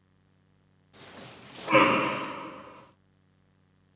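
An adult man lets out a loud shout.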